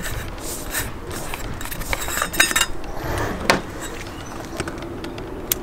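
A rubber air filter rustles and scrapes as hands handle it.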